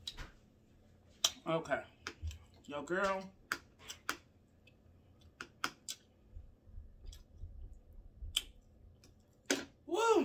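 A young woman chews food close to a microphone.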